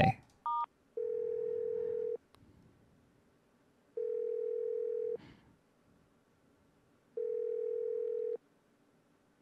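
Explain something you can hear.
A phone call's ringing tone sounds in steady repeated bursts.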